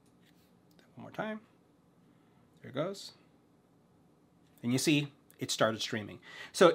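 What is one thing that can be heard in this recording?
A middle-aged man speaks calmly into a close microphone, in short phrases.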